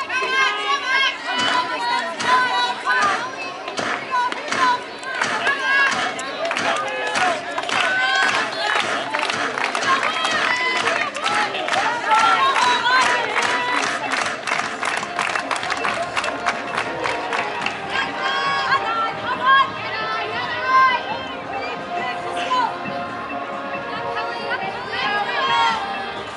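Young women cheer and chant nearby, outdoors.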